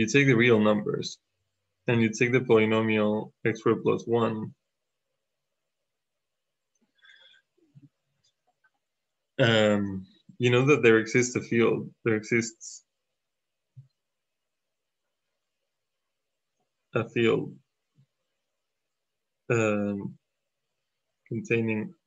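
A man explains calmly into a microphone, in short bursts with pauses.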